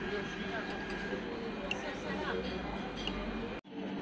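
A spoon clinks lightly against a cup.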